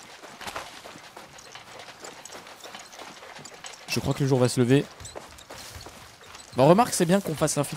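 Footsteps rustle through dense undergrowth.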